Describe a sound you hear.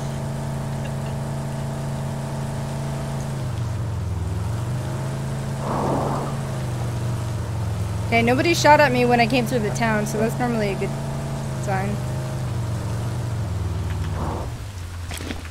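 A vehicle engine hums steadily while driving, then cuts off.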